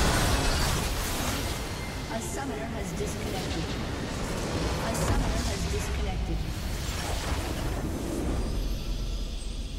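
Game spell effects and explosions crash and boom loudly.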